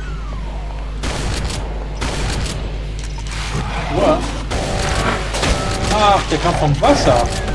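A shotgun fires repeatedly in loud blasts.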